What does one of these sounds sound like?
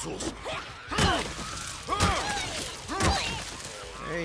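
Heavy blows thud as a weapon strikes a creature.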